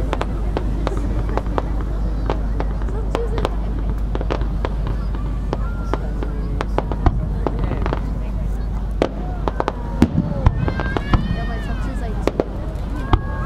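Fireworks boom with deep rumbling explosions outdoors.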